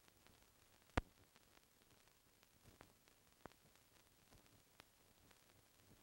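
Hammers strike metal in quick, uneven blows.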